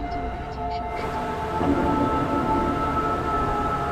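A car drives fast through a tunnel with a rushing roar.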